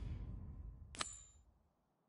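A soft menu click sounds as a selection changes.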